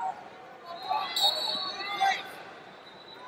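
A crowd cheers briefly.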